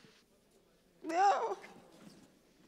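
A woman cries out loudly.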